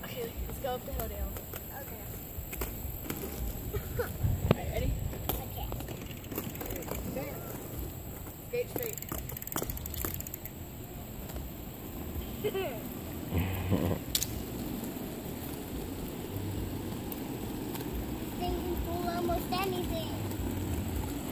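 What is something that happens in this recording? Young girls chatter and call out nearby.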